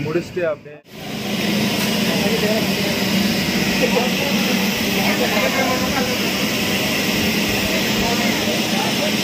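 A mechanical bull whirs as it bucks.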